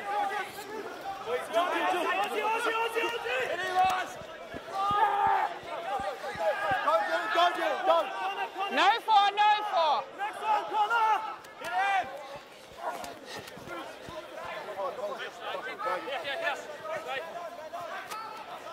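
Young men shout to each other from a distance across an open field.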